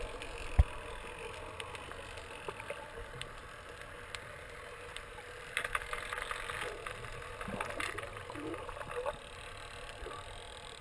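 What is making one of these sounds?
Underwater crackles and clicks go on throughout.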